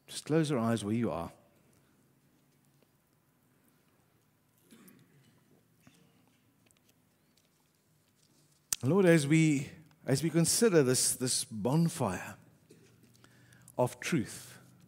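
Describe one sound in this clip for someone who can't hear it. A middle-aged man speaks calmly through a headset microphone, with pauses.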